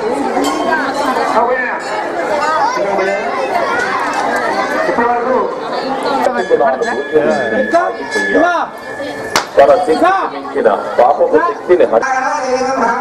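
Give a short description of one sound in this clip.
A crowd of people talk and call out together.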